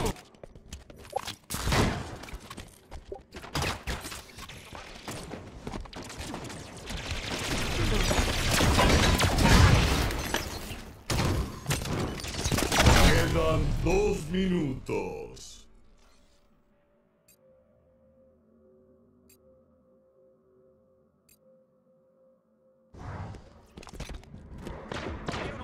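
Gunfire and energy blasts crack in quick bursts.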